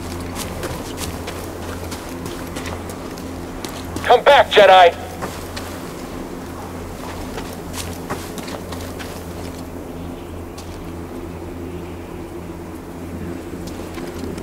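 Footsteps crunch on grass and stone.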